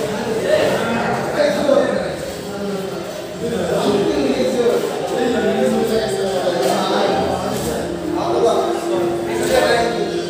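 Several young men talk over each other with animation nearby.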